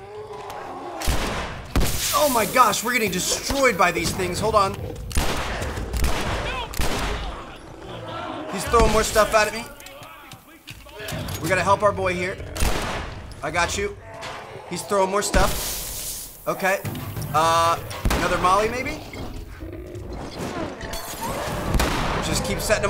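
Gunshots bang loudly.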